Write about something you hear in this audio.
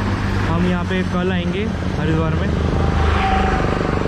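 A motor scooter drives past on a nearby road.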